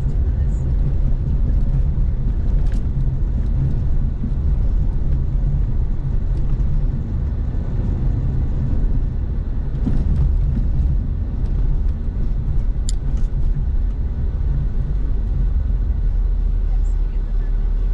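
A car engine hums steadily from inside the cabin as the car drives along.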